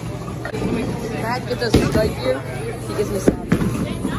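A bowling ball thuds onto the lane.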